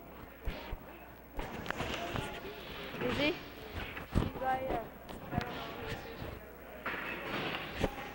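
Hockey sticks clack against the ice and boards.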